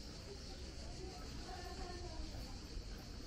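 Women chat faintly in the distance.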